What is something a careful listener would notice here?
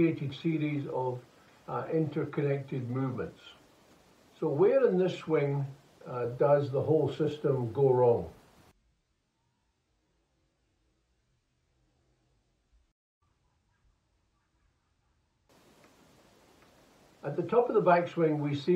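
An elderly man speaks calmly into a microphone, close by.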